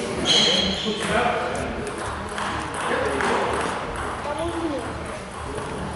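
A teenage boy talks nearby in a large echoing hall.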